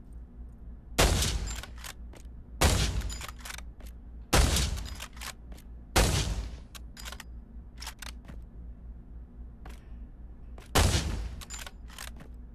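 A rifle fires sharp, loud shots that ring out in an echoing hall.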